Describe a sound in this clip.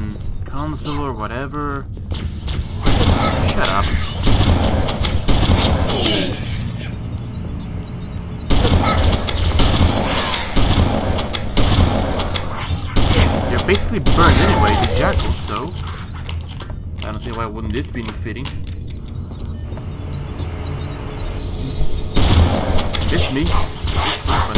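A shotgun fires loud blasts again and again.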